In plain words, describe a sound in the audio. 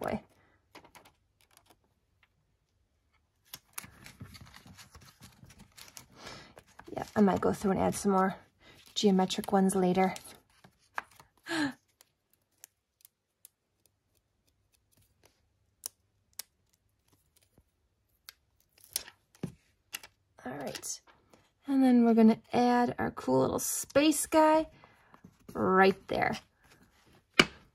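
Metal tweezers tap lightly against paper.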